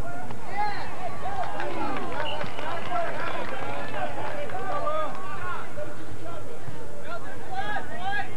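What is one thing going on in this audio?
Young players shout across an open field.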